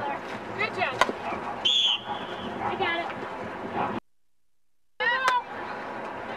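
A hockey stick sharply clacks against a ball.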